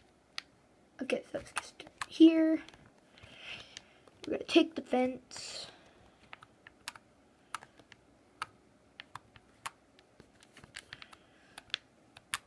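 A game's menu clicks softly as selections change.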